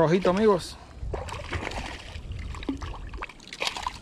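A fish splashes at the surface of the water.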